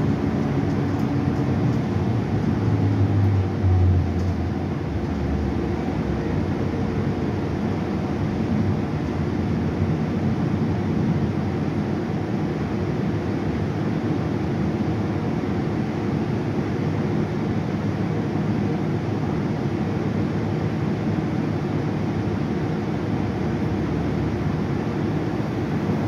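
A bus engine rumbles steadily while the bus drives.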